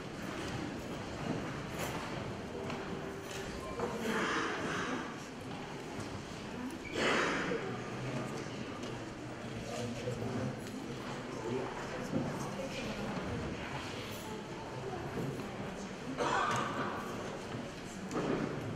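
A keyboard plays music through loudspeakers.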